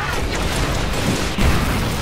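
An energy blast bursts with a crackling roar.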